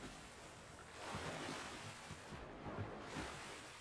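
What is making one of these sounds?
Water splashes and swishes as a figure wades and swims.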